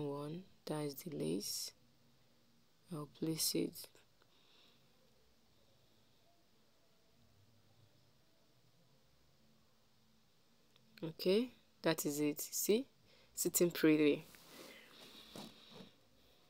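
Cloth rustles softly as hands handle and smooth it.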